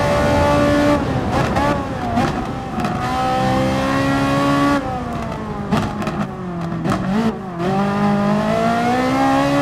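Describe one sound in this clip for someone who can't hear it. A race car engine drops in pitch as the driver brakes and shifts down, then climbs again.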